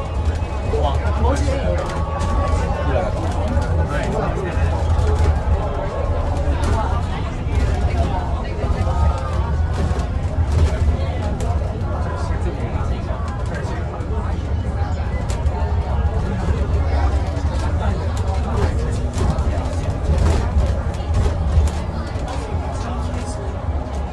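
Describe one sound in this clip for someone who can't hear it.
A bus interior rattles and clicks over bumps.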